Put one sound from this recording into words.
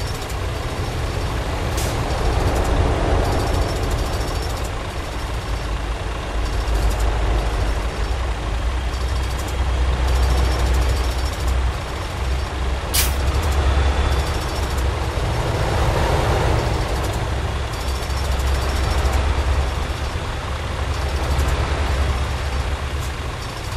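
Tyres hum on the road as vehicles pass close by.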